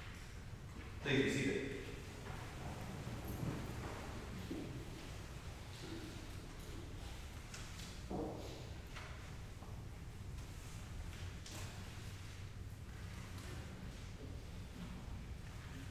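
A man speaks calmly at a distance in an echoing hall, heard through a microphone.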